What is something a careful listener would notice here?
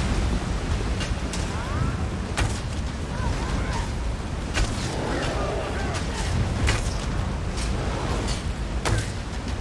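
Weapon blows strike sharply in a fight.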